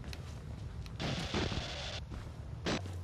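Electronic static crackles and hisses briefly.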